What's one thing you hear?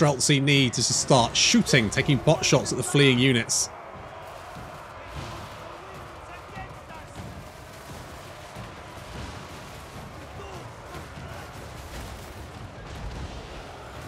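A large battle roars steadily in the distance.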